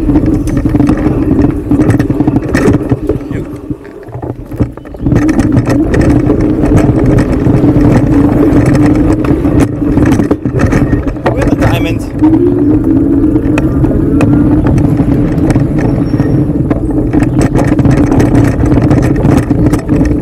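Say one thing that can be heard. Tyres rumble and crunch over a dirt trail.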